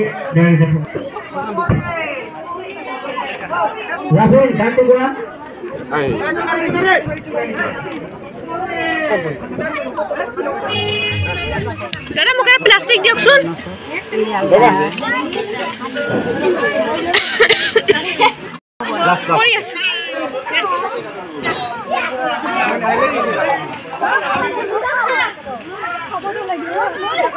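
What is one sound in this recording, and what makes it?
A crowd of women and children chatter loudly and close by.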